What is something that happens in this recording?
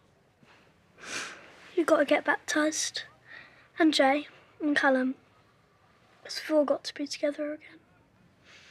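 A young girl speaks earnestly.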